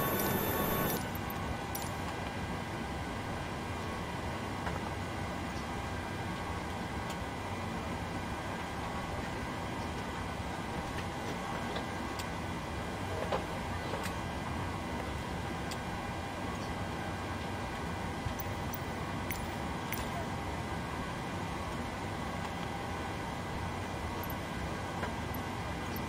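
An airliner cockpit hums steadily with fan noise.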